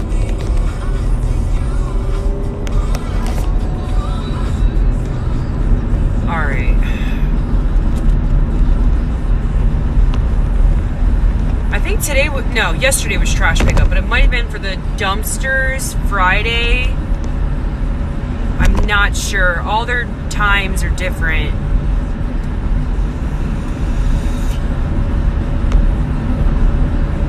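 A car engine rumbles low and steady while driving.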